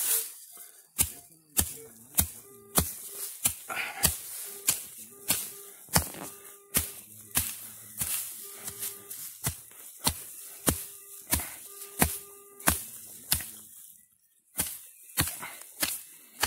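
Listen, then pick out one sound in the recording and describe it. A hatchet chops repeatedly into grassy soil with sharp thuds.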